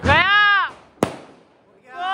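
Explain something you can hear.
A firework bursts with a sharp bang overhead.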